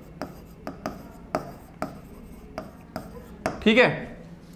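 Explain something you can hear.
A marker taps and scrapes on a board.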